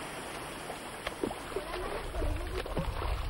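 A dog splashes while swimming close by.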